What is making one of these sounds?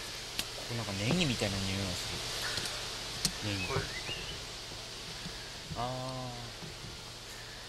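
A young man speaks calmly nearby, outdoors.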